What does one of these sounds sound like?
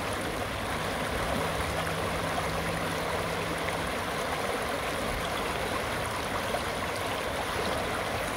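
A shallow river rushes and splashes steadily over rocks, close by.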